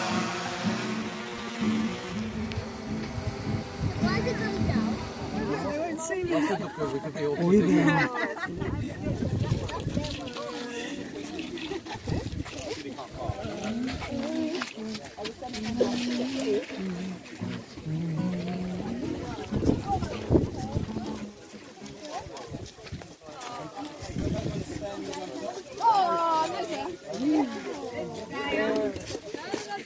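A crowd of men and women chatter and laugh close by.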